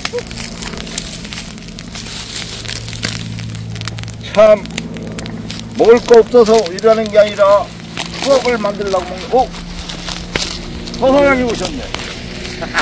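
Dry stalks crackle as a stick pokes burning weeds.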